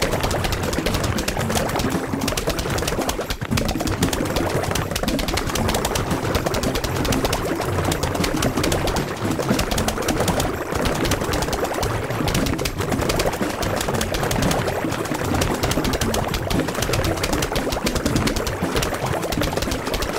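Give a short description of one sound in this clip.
Cartoon plants rapidly fire peas with a constant stream of pops and thuds.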